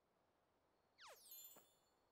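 A bright video game chime sweeps downward and rings.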